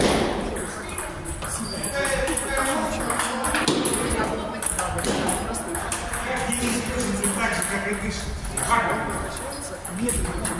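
A ping-pong ball clicks back and forth off paddles and a table in a rally.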